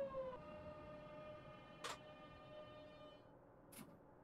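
An electric train's motor whines and fades away.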